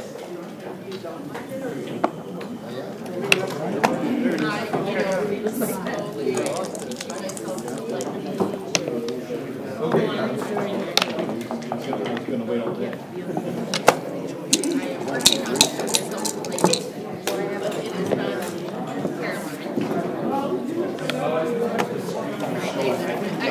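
Plastic game pieces click and clack as they are moved on a wooden board.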